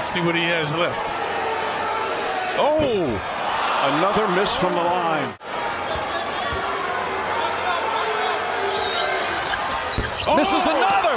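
A large arena crowd roars and cheers steadily.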